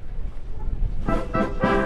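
A military brass band starts playing loudly outdoors.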